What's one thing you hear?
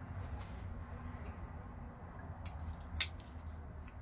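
A folding knife blade clicks shut.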